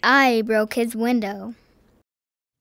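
A man speaks with animation in a high, cartoonish voice close by.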